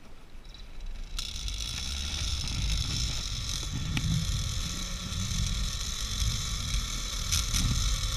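Wind rushes past a rider.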